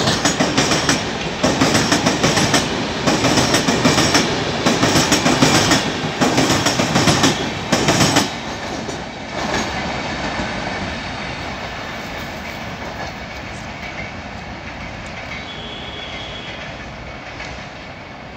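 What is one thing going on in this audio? A passenger train rumbles past with its wheels clattering over the rail joints, then fades into the distance.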